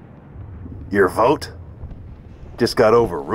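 A man replies curtly.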